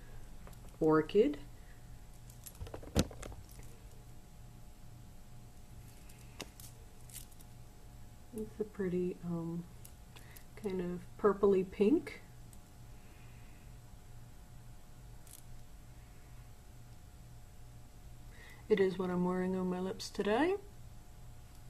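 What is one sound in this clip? A woman talks calmly and close to a microphone, in short bursts.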